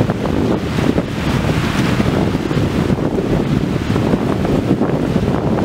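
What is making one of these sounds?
Small waves wash onto a shore.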